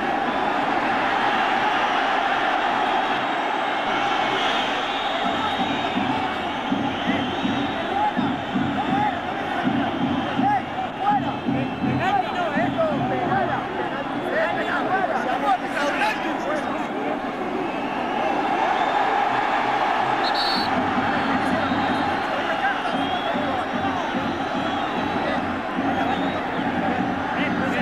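A large stadium crowd roars and whistles steadily.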